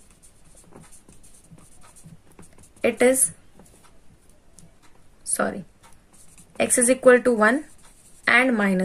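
A marker scratches and squeaks across paper.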